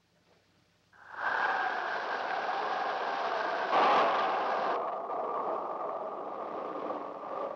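A flying saucer hums and whirs steadily.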